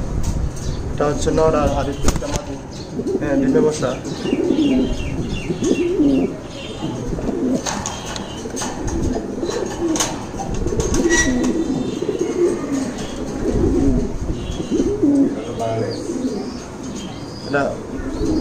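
Pigeons coo in low, throaty, rolling calls, close by.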